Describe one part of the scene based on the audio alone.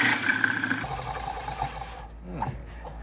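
A wood lathe whirs and winds down to a stop.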